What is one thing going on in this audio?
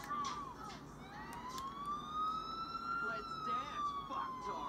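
A police siren wails and rises and falls.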